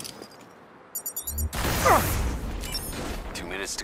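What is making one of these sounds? An explosion booms loudly and rumbles.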